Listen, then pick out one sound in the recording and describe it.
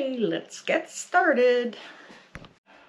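An elderly woman speaks close to a microphone with animation.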